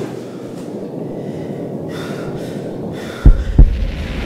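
Footsteps climb a staircase.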